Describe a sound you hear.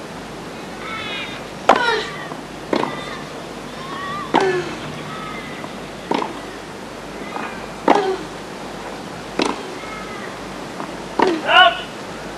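A young woman grunts loudly as she hits the ball.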